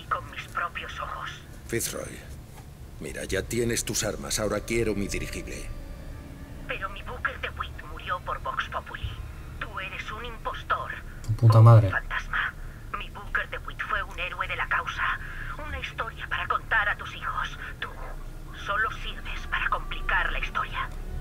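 A woman speaks tensely and with accusation, close by.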